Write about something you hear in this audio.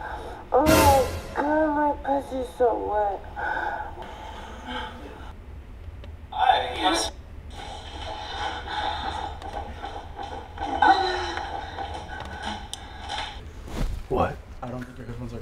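A young woman speaks loudly and with animation nearby.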